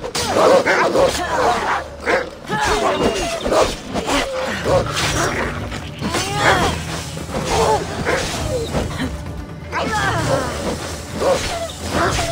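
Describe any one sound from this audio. Blows thud and strike in a close fight.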